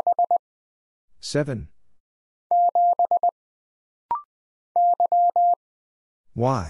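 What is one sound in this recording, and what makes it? Morse code beeps from a telegraph key in quick bursts of short and long tones.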